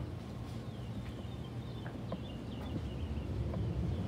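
A glass door swings open with a faint click.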